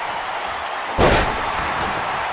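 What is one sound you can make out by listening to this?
A heavy body slams onto a wrestling mat with a loud thud.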